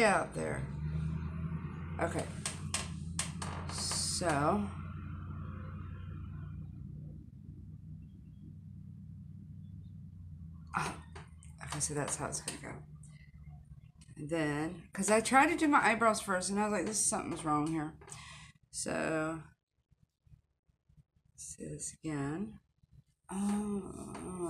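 A woman talks calmly and close up, with pauses.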